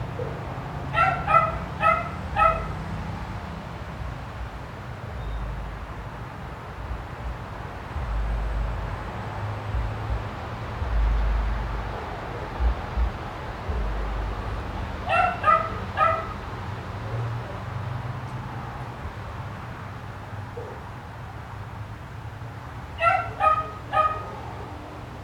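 A small dog barks sharply in short bursts of three.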